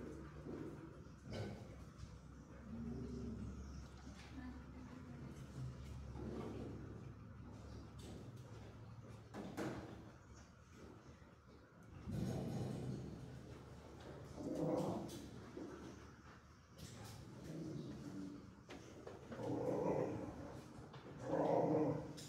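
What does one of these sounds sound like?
A dog pants heavily close by.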